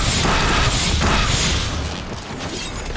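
A loud energy blast roars and crackles.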